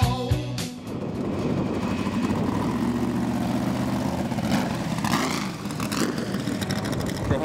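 A racing car engine idles with a deep rumble.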